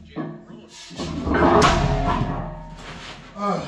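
A heavy weight drops onto rubber mats with a loud thud.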